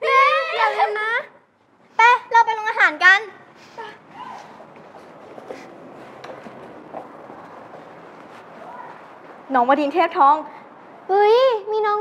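Teenage girls talk and squeal excitedly close by.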